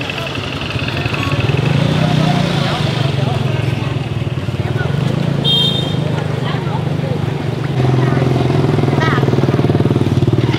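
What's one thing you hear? Women chat in the background outdoors.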